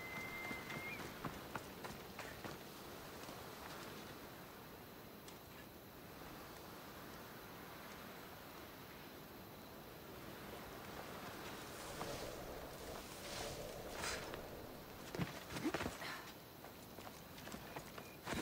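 Footsteps crunch on sand and gravel.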